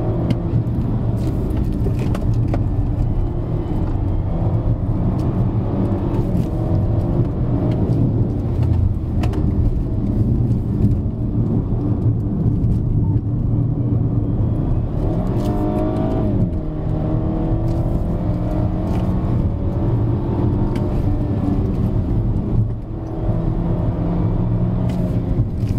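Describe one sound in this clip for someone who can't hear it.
A man talks calmly and steadily inside a car.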